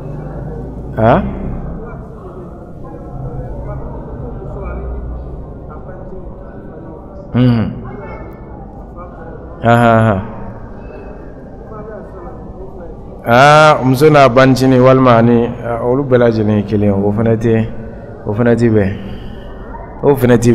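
A man speaks into a microphone with animation, heard through a loudspeaker in a reverberant room.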